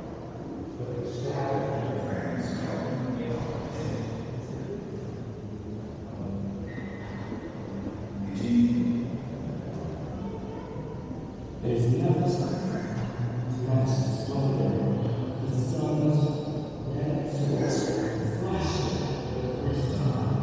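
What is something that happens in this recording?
A man talks calmly, close to the microphone, in a quiet echoing hall.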